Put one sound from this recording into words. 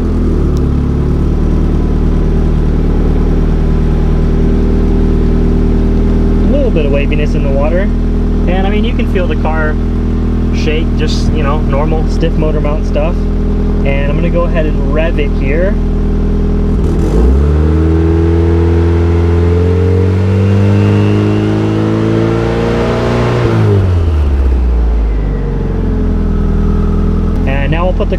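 A car engine idles with a steady low rumble nearby.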